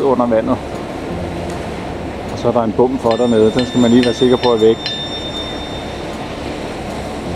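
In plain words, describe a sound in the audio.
Water churns behind a passing barge.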